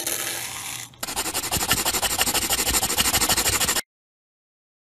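A crayon scribbles on paper.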